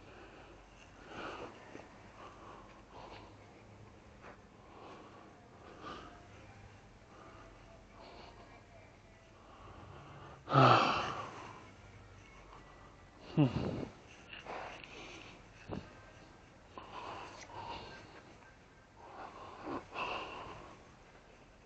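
A rake scrapes and rustles over dry grass and leaves, close by.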